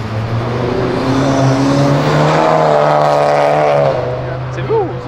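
A car engine revs loudly and roars past.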